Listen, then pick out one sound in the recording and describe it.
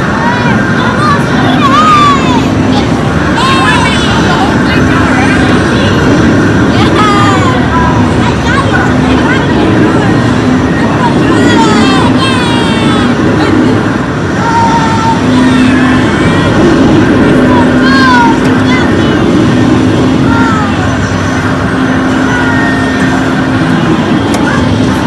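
Arcade racing games roar loudly.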